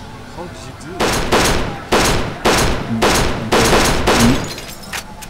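Pistol shots fire in quick succession.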